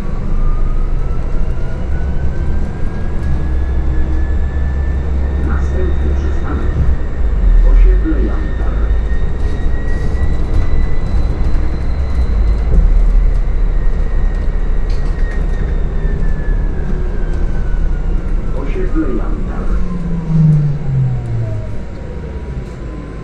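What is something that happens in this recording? An electric drive motor on a hybrid city bus whines, rising in pitch and then falling as the bus slows.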